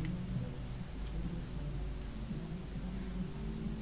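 Footsteps shuffle softly on a hard floor.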